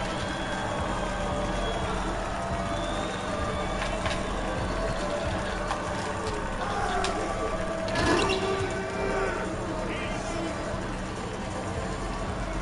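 A crowd murmurs and cheers steadily in a large echoing hall.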